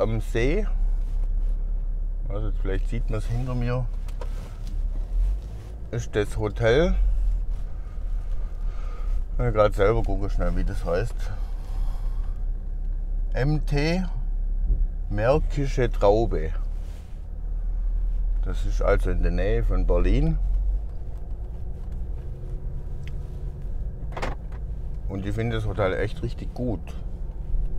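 A car engine hums low and steady from inside.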